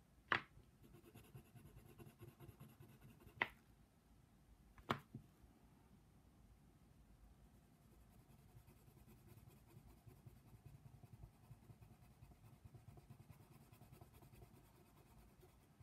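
A pencil scratches softly on paper, close by.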